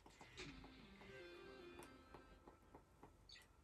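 A short electronic video game jingle plays from a television speaker.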